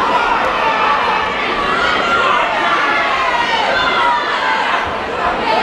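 A crowd of men and women chatters loudly all around in a large hall.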